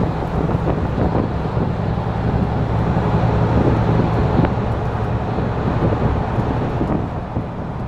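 A coach passes close by.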